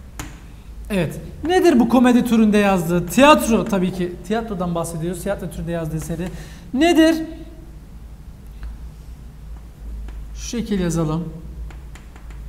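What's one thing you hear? A young man speaks calmly and clearly.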